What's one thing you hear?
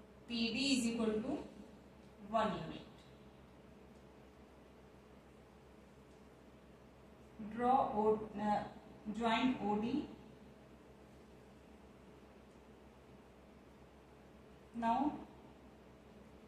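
A woman speaks calmly and clearly, close by, in short phrases with pauses.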